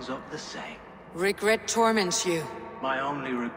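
A woman asks a short question calmly.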